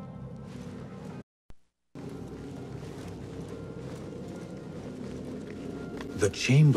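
Soft footsteps creep across a stone floor.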